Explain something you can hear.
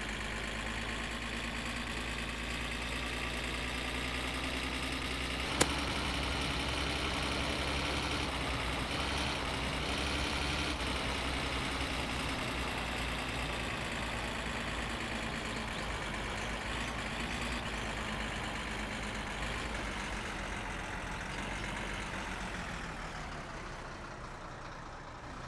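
A truck engine hums steadily, its pitch rising and falling gently.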